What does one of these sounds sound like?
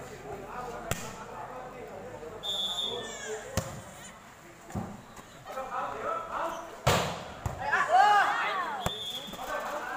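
A ball is kicked with sharp thuds.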